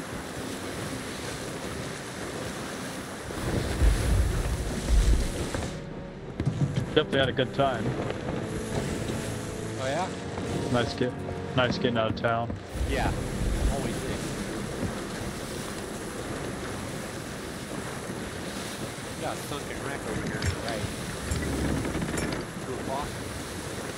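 Strong wind blows steadily.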